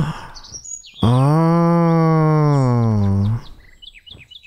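A young man sings a long, wavering note into a microphone.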